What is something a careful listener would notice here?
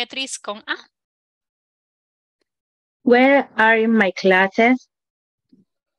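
A woman speaks clearly through an online call, in short phrases.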